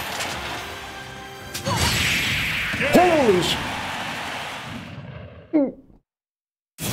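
Video game fighting sound effects crash and blast.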